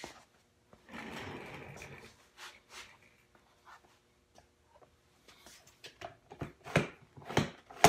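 An office chair squeaks as a man shifts in the seat.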